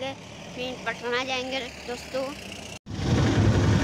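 A young boy speaks excitedly close by.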